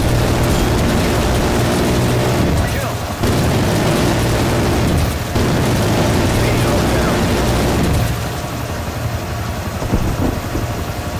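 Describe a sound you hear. A helicopter's rotor thrums steadily.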